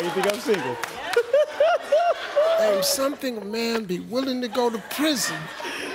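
A man laughs excitedly.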